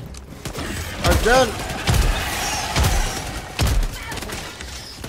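Heavy gunshots boom in short bursts.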